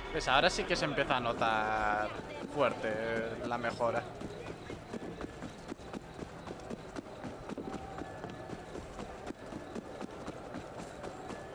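Quick footsteps run over stone.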